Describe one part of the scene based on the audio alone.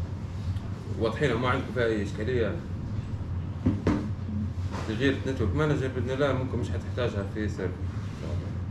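A man speaks calmly nearby, in short phrases with pauses.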